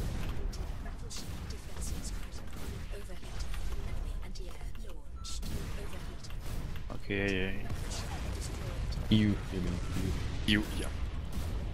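Heavy guns fire in bursts.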